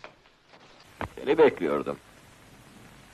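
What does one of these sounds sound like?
A man exclaims sharply, close by.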